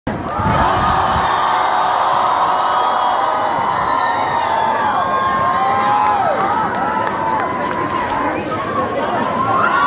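Loud electronic music plays through large speakers in an echoing hall.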